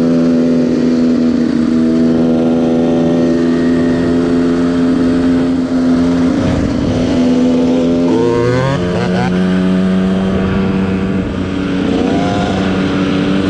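A second dirt bike engine revs nearby, rising and falling.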